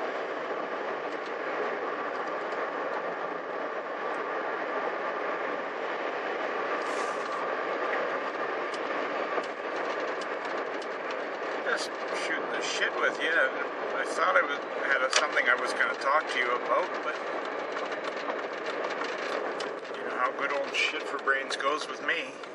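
A car engine hums steadily, with road noise inside the car.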